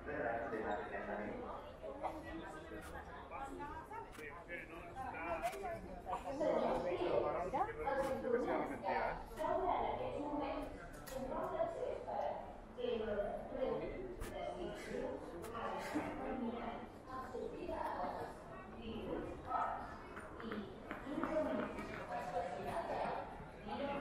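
Footsteps tap on a hard floor close by.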